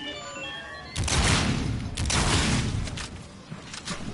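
Guns fire in loud rapid bursts.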